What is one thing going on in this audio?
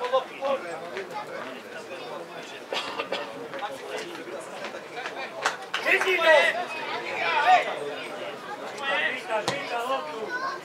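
Spectators chatter nearby in an open-air crowd.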